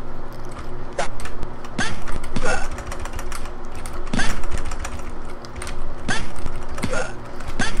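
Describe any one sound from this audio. Retro arcade game music plays with a steady beat.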